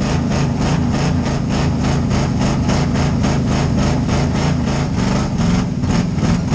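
The car's body rattles and shakes over a rough dirt track.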